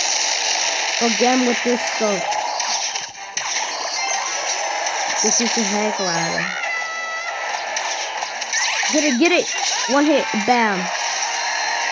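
A boy talks with animation, close by.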